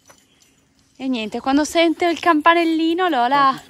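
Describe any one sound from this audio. A small dog yelps and whines excitedly.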